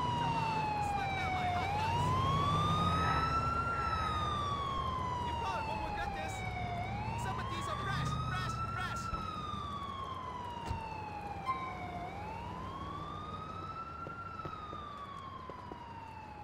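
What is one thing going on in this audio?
A siren wails steadily, rising and falling.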